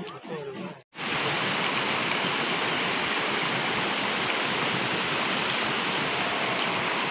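Water rushes and splashes down a stepped cascade.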